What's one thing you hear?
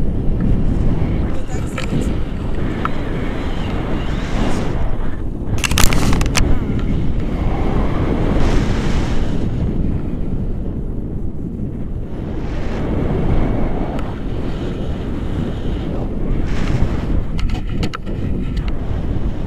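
Nylon straps and a canopy flap and rustle in the wind.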